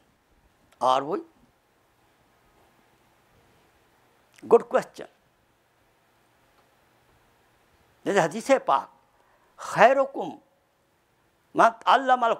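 An elderly man speaks slowly and deliberately into a microphone, with long pauses.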